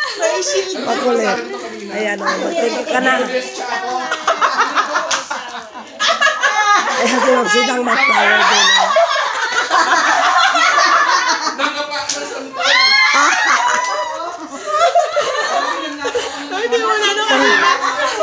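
A young woman talks and laughs loudly, close by.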